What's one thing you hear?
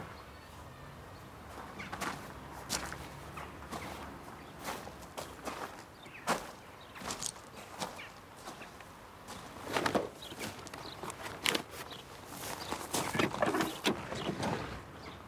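A cardboard box creaks and rustles as it is carried.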